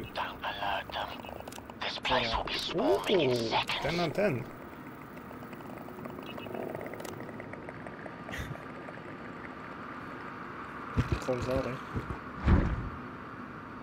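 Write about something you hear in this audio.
A monster groans and snarls close by.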